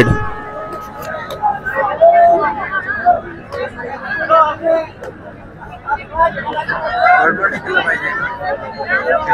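A young man chants rapidly and without pause.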